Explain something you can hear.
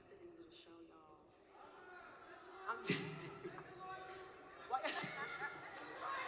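A crowd cheers and claps in a large hall.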